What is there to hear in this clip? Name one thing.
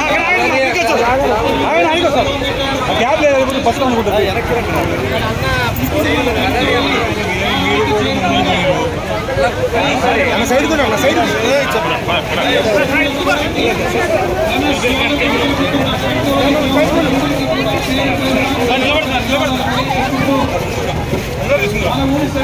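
A crowd of men and women talk and shout over one another close by.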